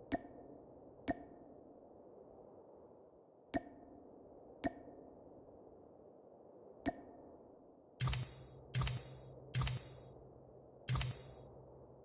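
Short menu clicks sound one after another.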